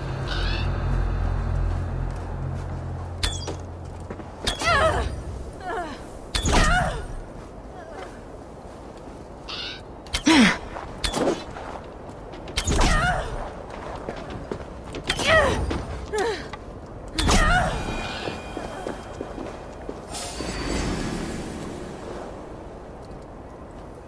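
A bowstring twangs as arrows fly, again and again.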